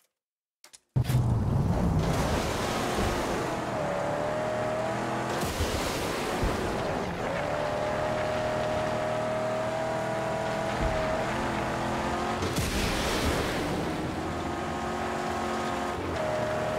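A car engine roars steadily as the car speeds over sand.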